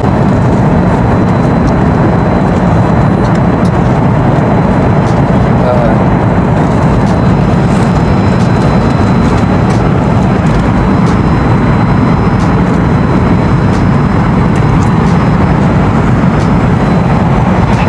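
A steady low engine roar fills the space.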